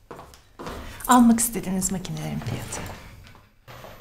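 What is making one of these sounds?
A woman speaks calmly, close by.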